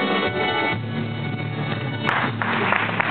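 A group of young children sing together.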